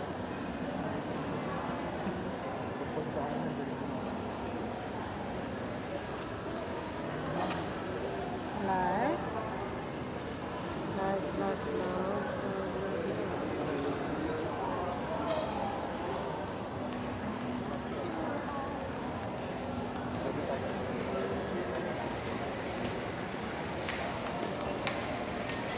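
A crowd murmurs throughout in a large echoing hall.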